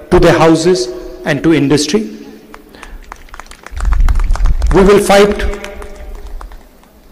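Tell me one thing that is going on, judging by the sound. A middle-aged man speaks loudly into a microphone through loudspeakers, with echo outdoors.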